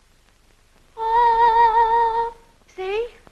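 A boy sings a long, high held note.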